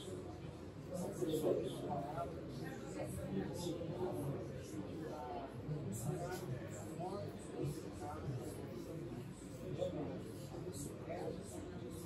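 A middle-aged man speaks calmly nearby in a room with slight echo.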